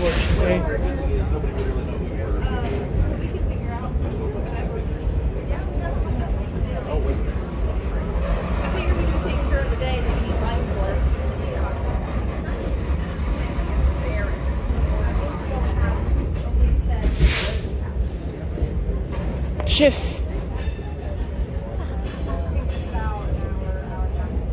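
Wind rushes past an open train car.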